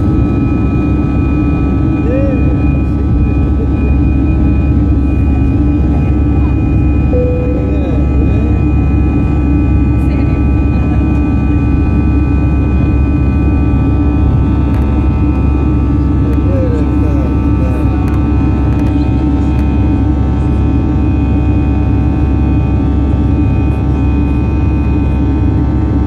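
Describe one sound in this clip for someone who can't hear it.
Jet engines roar steadily with a loud, low drone.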